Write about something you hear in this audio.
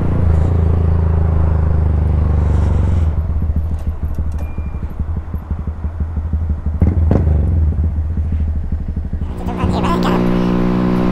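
A quad bike engine roars up close, rising and falling as it changes speed.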